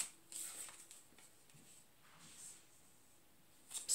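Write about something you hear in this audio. A playing card slides across a tabletop.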